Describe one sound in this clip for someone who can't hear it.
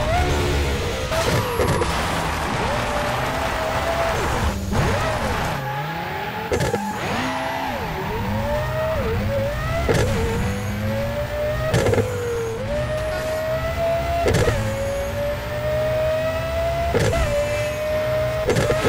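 A racing car engine roars and revs up and down through gear changes.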